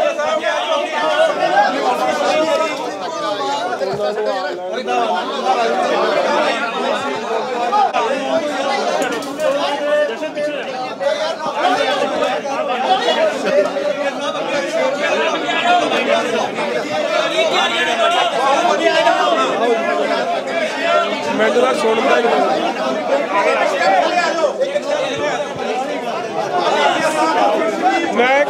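A crowd of men murmurs and talks in the background.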